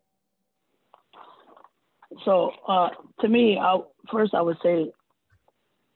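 A man with a deep voice speaks over an online call.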